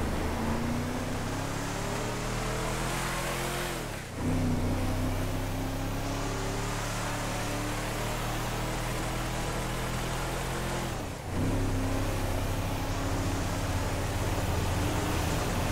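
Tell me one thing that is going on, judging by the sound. A pickup truck engine revs up steadily, dropping in pitch as it shifts gears.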